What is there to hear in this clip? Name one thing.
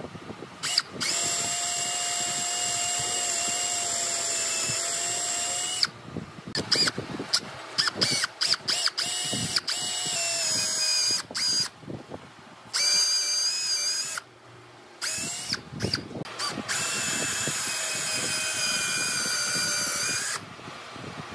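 A cordless drill bores into wood in bursts.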